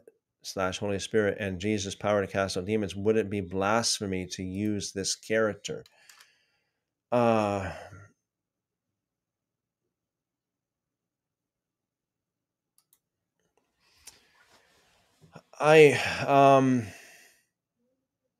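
A middle-aged man speaks calmly and expressively into a close microphone, with pauses.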